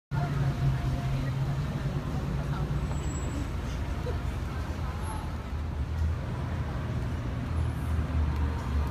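Low traffic rumble fills a busy street outdoors.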